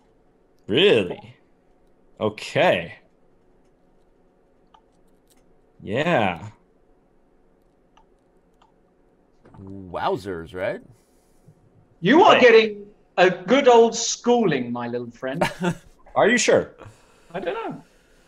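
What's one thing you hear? A man talks with animation through a webcam microphone, in short bursts with pauses.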